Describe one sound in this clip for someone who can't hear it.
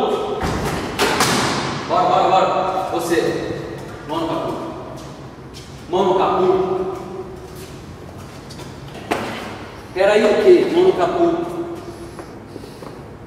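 Several adults chat with animation nearby in a large, echoing hall.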